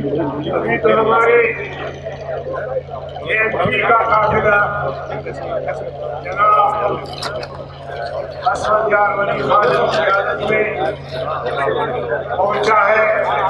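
A man speaks forcefully into a microphone, heard through loudspeakers outdoors.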